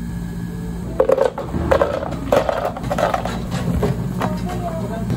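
Ice cubes clatter into a plastic blender jug.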